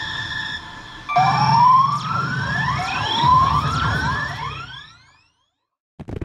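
A slot machine plays bright electronic effects with rising tones.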